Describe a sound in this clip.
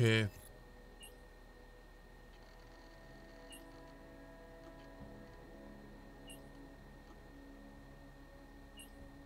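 Short soft chimes sound as new chat messages pop up.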